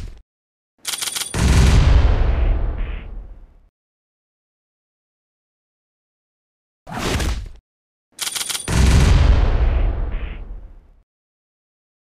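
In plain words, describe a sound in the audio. Punches and kicks thud with booming impact blasts.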